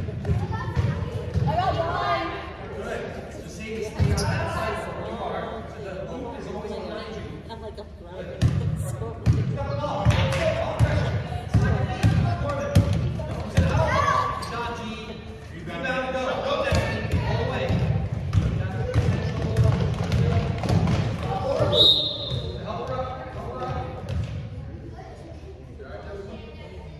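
Young girls shout and call out across a large echoing hall.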